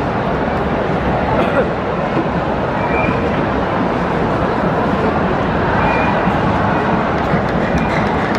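A stadium crowd roars and chants steadily outdoors.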